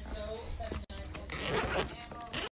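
A plastic bag crinkles under a hand.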